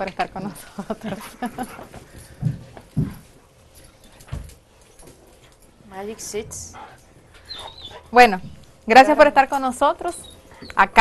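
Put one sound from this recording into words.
A woman speaks with animation, heard close through a microphone.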